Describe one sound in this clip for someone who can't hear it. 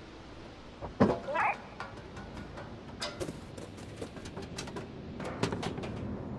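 A cat's paws thump and clatter on a metal roof.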